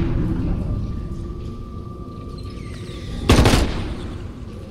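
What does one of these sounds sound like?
A gun fires a loud shot.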